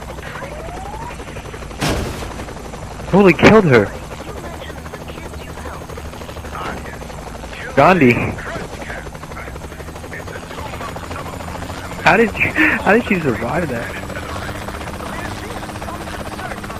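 A helicopter's rotor drones steadily overhead.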